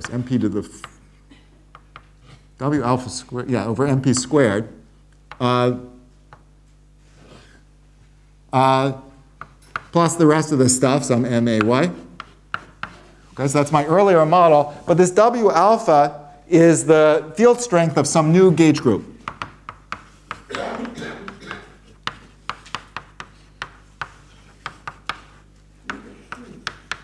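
Chalk taps and scrapes on a board.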